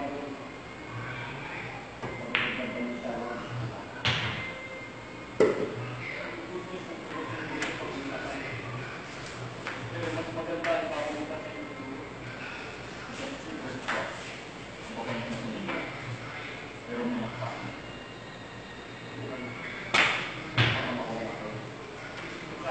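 Pool balls clack sharply against each other.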